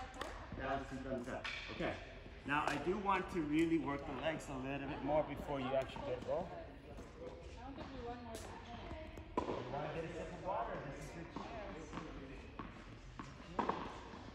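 A young girl talks nearby in an echoing hall.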